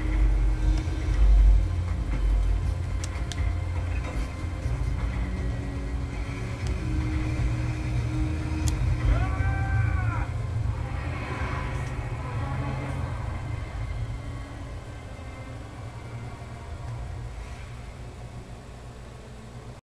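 Video game music and effects play through a loudspeaker.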